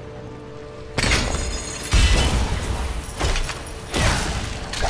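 Heavy blows and crashes ring out as a fighter battles monsters.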